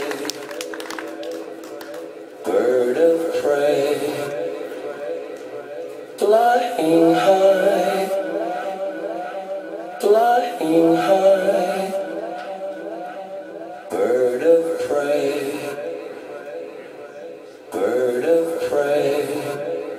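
Electronic music plays loudly through speakers, with synth phrases that swell every few seconds.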